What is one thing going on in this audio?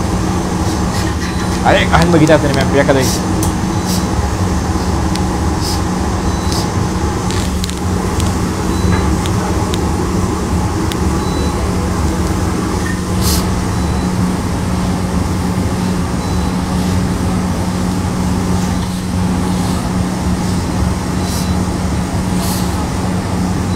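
A steam iron hisses in short bursts.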